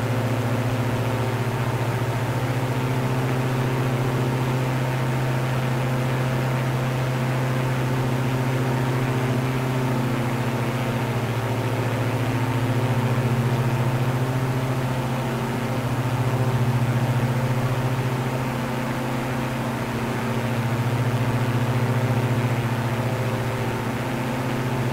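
A propeller plane's engines drone steadily and loudly.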